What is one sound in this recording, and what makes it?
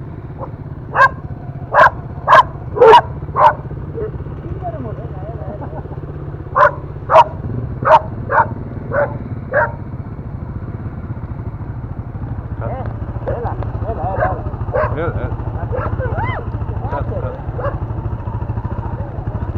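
Dogs bark loudly in short sharp bursts, outdoors.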